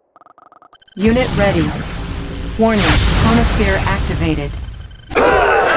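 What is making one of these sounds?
A loud sci-fi teleport effect whooshes and hums.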